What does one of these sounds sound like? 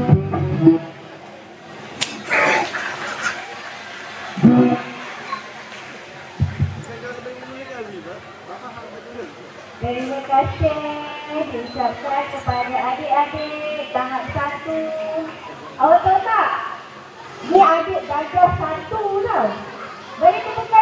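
Women talk and chatter nearby.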